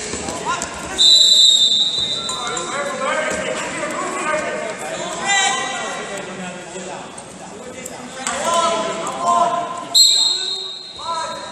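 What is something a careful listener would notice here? A referee's whistle blows sharply in a large echoing hall.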